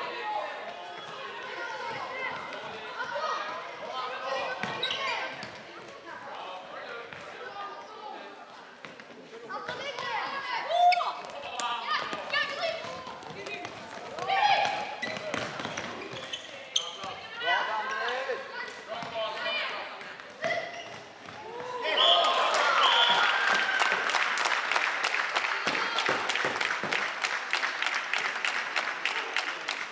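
Plastic sticks clack against a ball and the floor.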